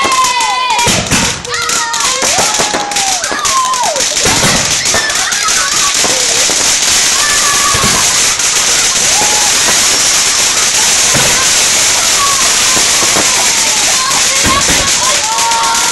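Firework shells burst with deep booms.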